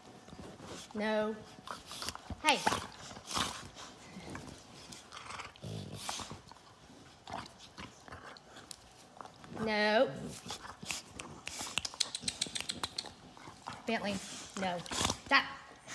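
Dogs growl and whine while play-fighting at close range.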